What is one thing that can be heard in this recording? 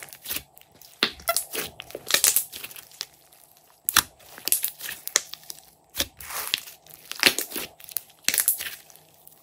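Air bubbles in slime crackle and snap.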